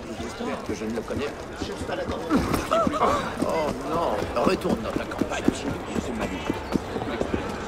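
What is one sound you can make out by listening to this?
Footsteps walk briskly over cobblestones.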